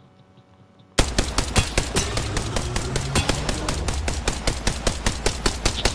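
A rifle fires in rapid bursts of shots in a video game.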